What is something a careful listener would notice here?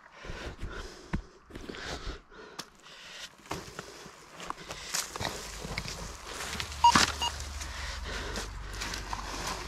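Footsteps crunch on dry leaves and loose stones.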